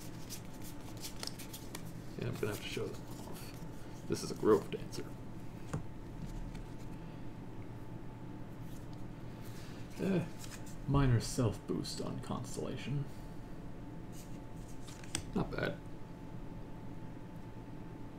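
Playing cards rustle and tap as a hand handles them.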